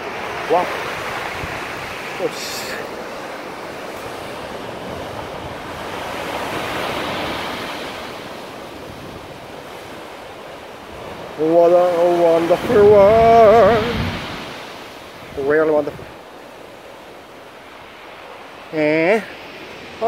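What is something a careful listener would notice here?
Waves crash and surge against rocks.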